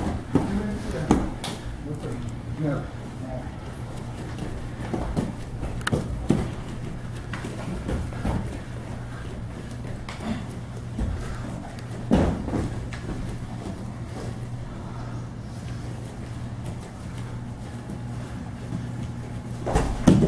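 Bare feet thump and shuffle on a padded mat.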